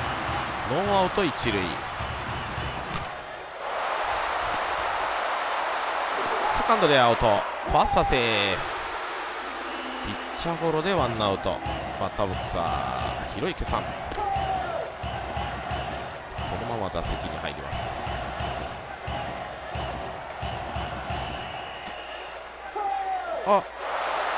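A crowd cheers and chants steadily in a large stadium.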